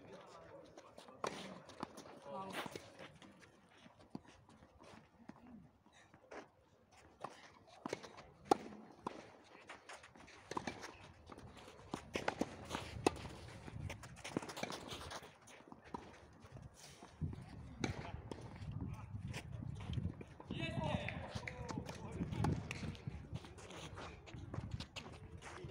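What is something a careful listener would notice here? Tennis rackets strike a ball with sharp pops, outdoors.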